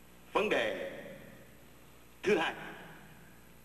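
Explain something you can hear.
A man speaks into a microphone in short bursts, heard through loudspeakers in an echoing hall.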